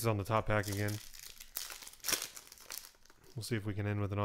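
Foil wrappers crinkle and rustle as card packs are torn open.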